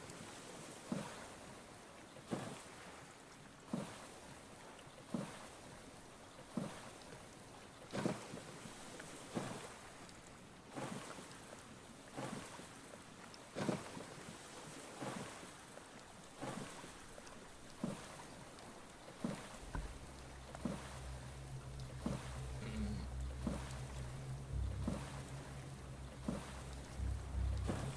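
A paddle splashes through water in slow, regular strokes.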